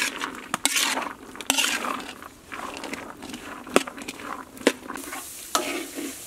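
A metal ladle scrapes and clanks against a wok full of grains.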